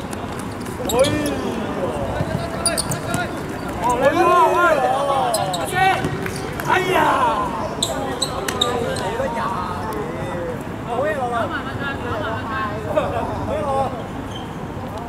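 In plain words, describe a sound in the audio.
Young men shout to each other outdoors during a game.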